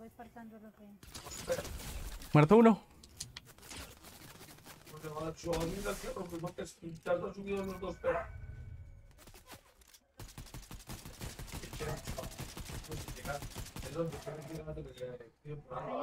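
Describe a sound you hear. Gunshots crack in quick bursts from a video game.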